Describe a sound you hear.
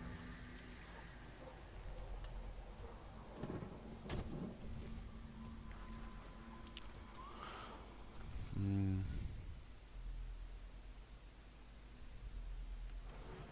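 A man talks calmly close to a microphone.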